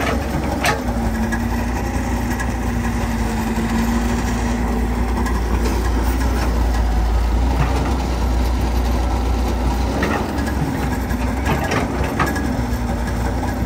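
An excavator bucket scrapes and thuds into wet mud.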